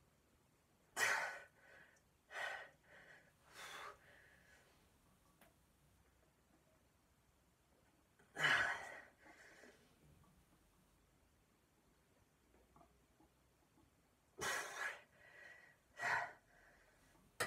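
A young man grunts and exhales sharply with effort.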